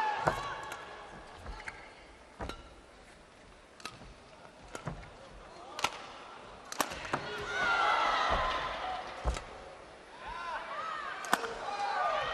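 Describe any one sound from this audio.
Rackets smack a shuttlecock back and forth in a rally.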